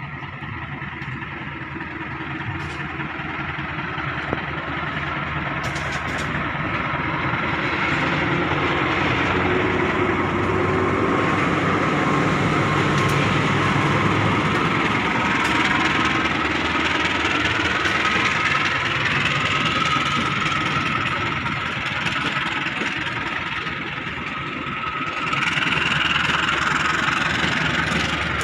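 Train wheels clatter and screech on the rails.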